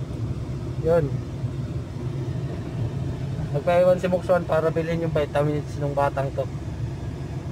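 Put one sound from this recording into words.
A man speaks close by in a calm, muffled voice.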